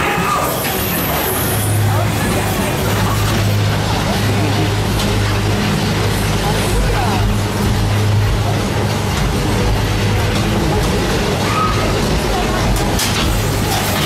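A fairground ride rumbles and clatters as it spins.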